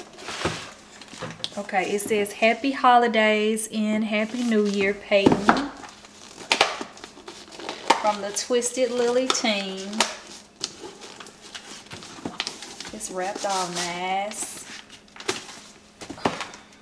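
Paper and small objects rustle and clatter as they are handled.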